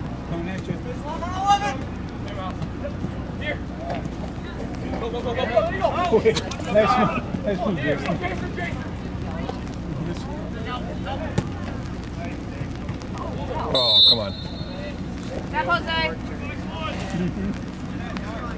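Young women shout to each other across an open field in the distance.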